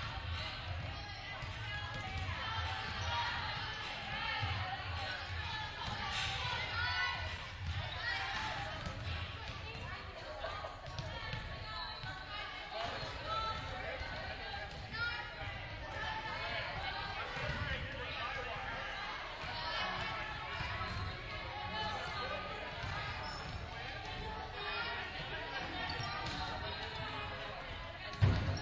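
Many girls chatter and call out in a large echoing gym.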